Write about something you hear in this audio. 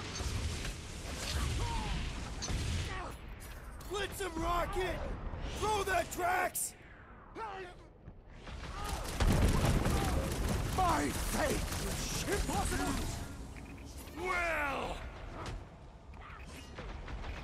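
Energy blasts crackle and whoosh in bursts.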